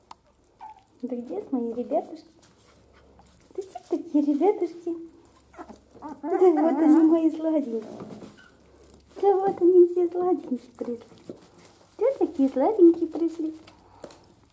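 Puppies yelp and whine up close.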